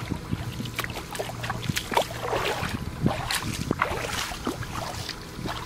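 Water splashes around feet wading through shallow water.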